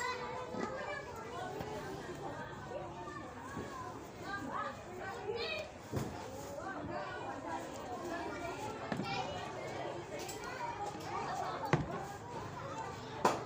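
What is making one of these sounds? Children chatter and shout excitedly outdoors.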